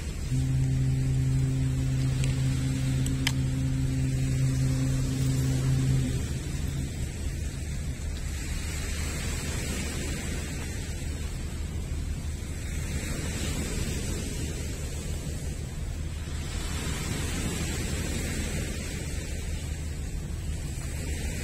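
Small waves wash and break over a pebble shore outdoors.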